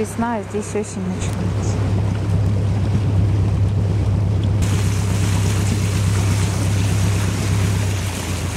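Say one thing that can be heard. A boat engine hums low and steady.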